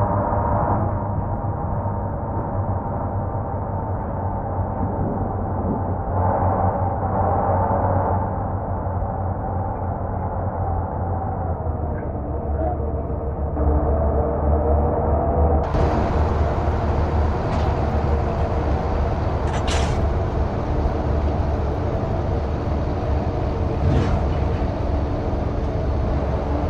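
Tyres roll over the road with a low rumble.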